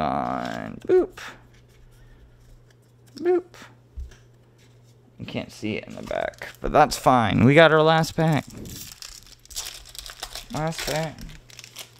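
A foil card wrapper crinkles in someone's hands.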